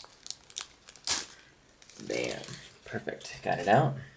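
A plastic sleeve crinkles in someone's hands.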